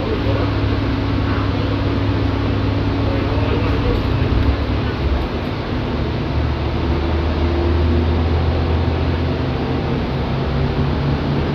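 The bus interior rattles softly over the road.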